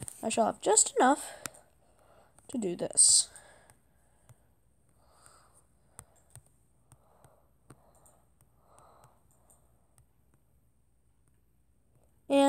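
Wooden blocks thud softly into place, one after another.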